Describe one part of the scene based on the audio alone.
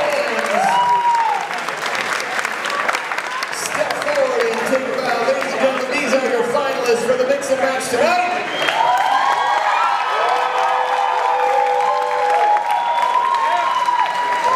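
A live band plays lively swing music in a large echoing hall.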